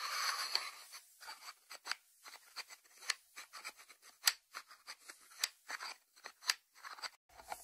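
Fingertips tap on the lid of a ceramic dish.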